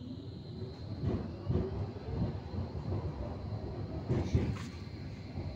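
Tram wheels clatter and thump over rail joints.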